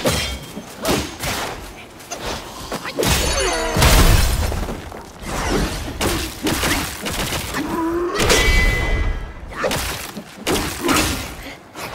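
Heavy blows thud against a creature.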